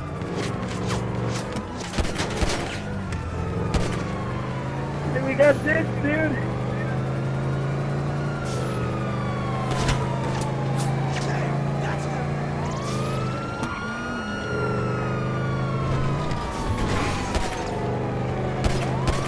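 A car engine roars steadily as the car speeds along.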